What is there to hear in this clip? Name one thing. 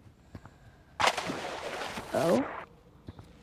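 Water splashes as a swimmer plunges in.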